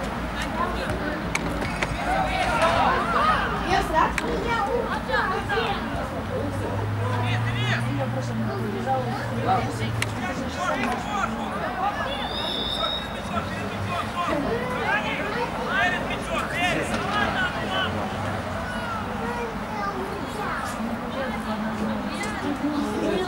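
Young men shout and call to each other in the distance outdoors.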